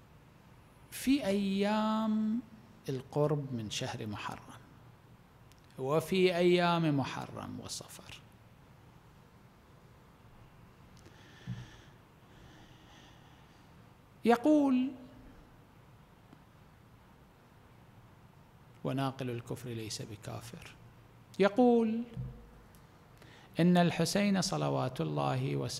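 A man speaks slowly and calmly into a microphone, in bursts with long pauses.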